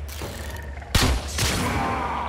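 A bow releases an arrow with a sharp snap.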